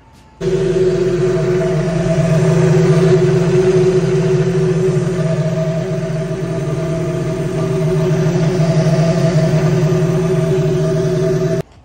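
A car engine idles steadily and close by.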